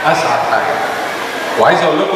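A man speaks into a microphone in a large echoing hall.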